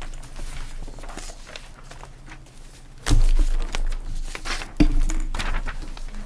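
Papers rustle as they are handled.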